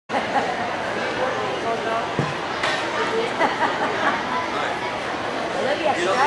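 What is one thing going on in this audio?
A crowd of children and adults chatters in a large echoing hall.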